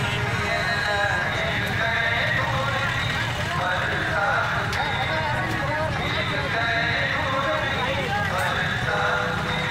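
A large crowd of men chants and shouts outdoors.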